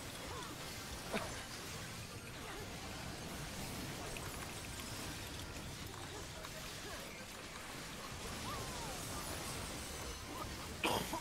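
Game battle effects whoosh and clash.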